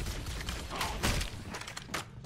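A grenade explodes in a video game battle.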